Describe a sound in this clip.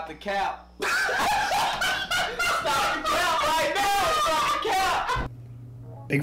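Two young men laugh and shout loudly with excitement.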